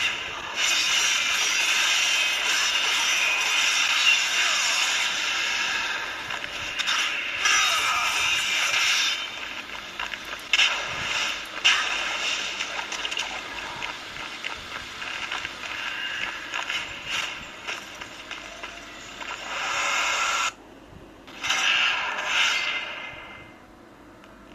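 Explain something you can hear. Clashing fight sounds from a video game play through a small phone speaker.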